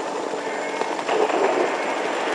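Fireworks whoosh and crackle in the sky.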